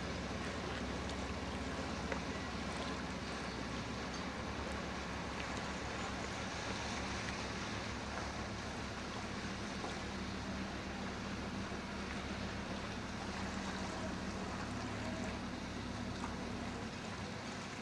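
A diesel engine of a passenger motor boat drones low as the boat passes under way.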